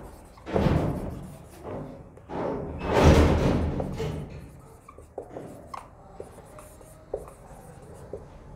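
A marker squeaks and scrapes across a whiteboard.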